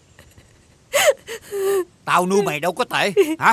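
An older man speaks in a low, strained voice close by.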